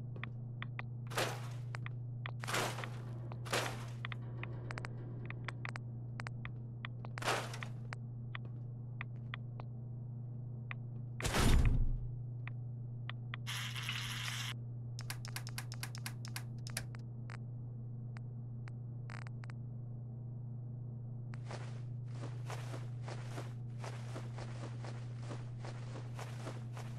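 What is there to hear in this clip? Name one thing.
Soft menu clicks and whooshes tick as items are scrolled through.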